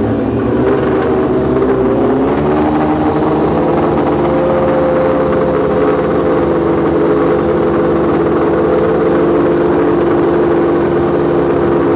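A motorcycle roars away at full throttle, its engine climbing in pitch.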